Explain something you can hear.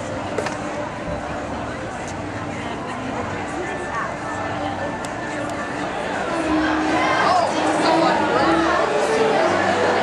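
A crowd of people chatters and laughs in a busy, echoing room.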